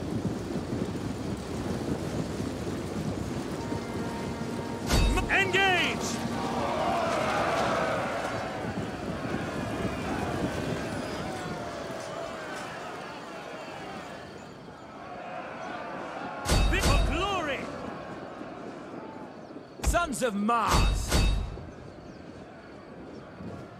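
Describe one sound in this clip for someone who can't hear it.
A large body of soldiers shuffles and marches with a low, steady rumble.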